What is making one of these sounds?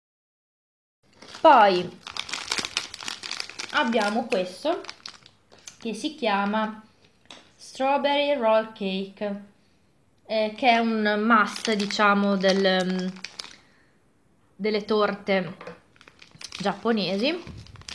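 A plastic candy wrapper crinkles in someone's hands.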